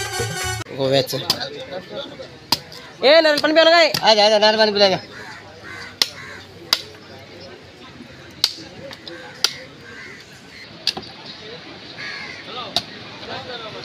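A machete chops sharply into a coconut.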